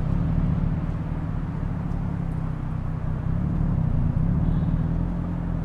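A car engine hums steadily at low revs.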